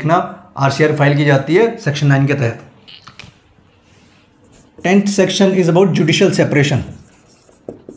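A man speaks clearly and steadily, close by, as if teaching.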